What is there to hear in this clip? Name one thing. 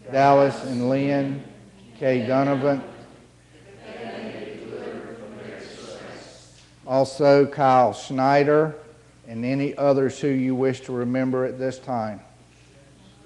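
A man chants a prayer in a steady sung voice, echoing in a large hall.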